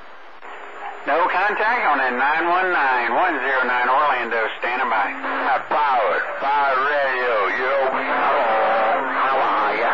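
A radio loudly plays a crackling, distorted transmission.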